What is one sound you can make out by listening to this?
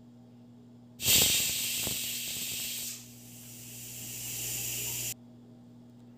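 A pressure cooker whistles and hisses loudly as steam escapes.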